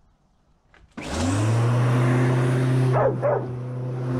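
A lawn mower engine starts with a roar and runs loudly up close.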